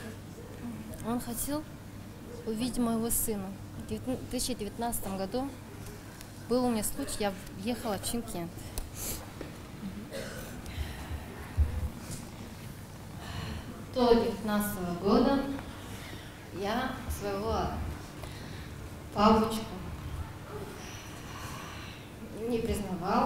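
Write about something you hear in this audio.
A young woman speaks emotionally into a microphone in an echoing hall.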